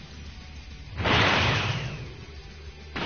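A powering-up surge roars loudly.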